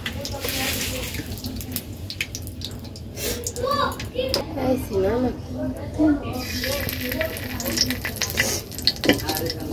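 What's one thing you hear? Hot oil sizzles and crackles in a pan.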